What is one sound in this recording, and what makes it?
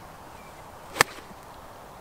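A golf club sharply strikes a ball.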